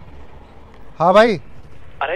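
A young man talks on a phone up close.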